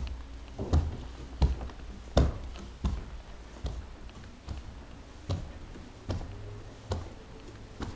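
Footsteps thud on carpeted stairs.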